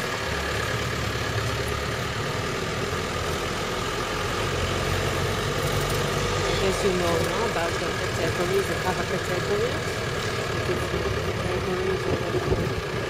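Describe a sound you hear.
Tyres rumble on a dirt road.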